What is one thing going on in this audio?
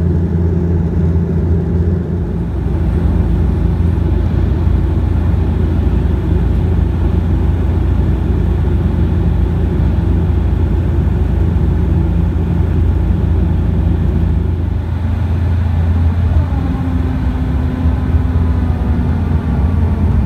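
An aircraft engine drones steadily and loudly.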